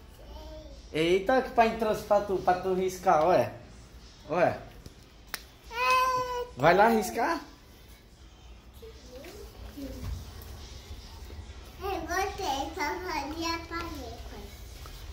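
A woman talks to a child nearby in a warm, coaxing voice.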